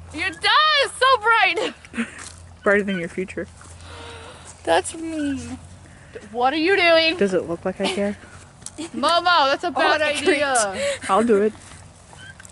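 Young women talk and laugh loudly close by.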